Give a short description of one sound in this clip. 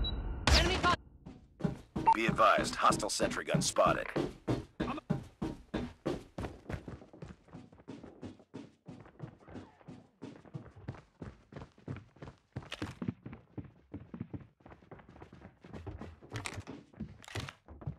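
Quick footsteps thud steadily on a hard floor.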